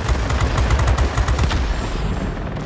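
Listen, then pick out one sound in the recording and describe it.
Machine guns fire in rapid bursts.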